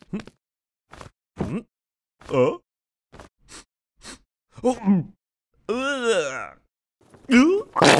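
A man mutters and exclaims in a cartoon voice.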